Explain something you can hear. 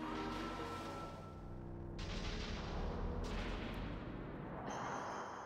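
A low electronic rumble and hissing whoosh sound as a monster dissolves.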